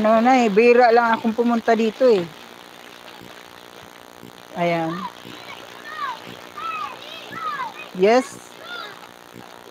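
Water splashes gently around a child wading.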